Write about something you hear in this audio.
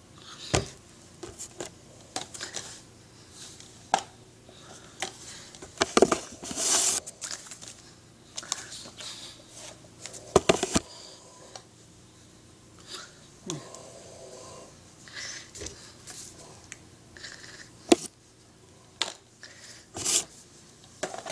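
Hands rustle and knock against the microphone.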